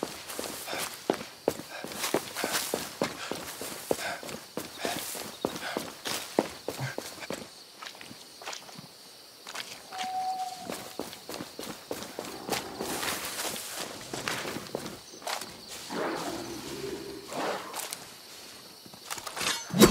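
Footsteps rustle through grass at a quick, steady pace.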